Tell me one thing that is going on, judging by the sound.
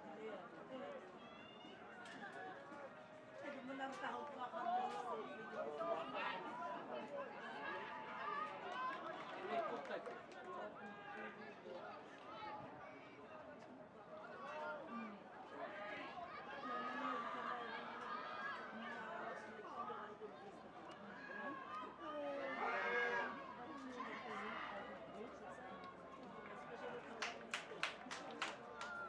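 A crowd of spectators shouts and cheers outdoors at a distance.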